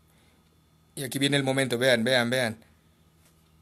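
A man calls out loudly and briefly nearby.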